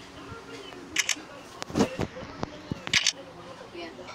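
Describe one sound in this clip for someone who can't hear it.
Short interface clicks sound as menu items are picked.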